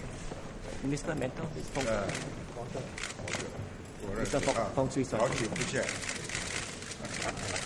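Several elderly men talk and greet each other close by.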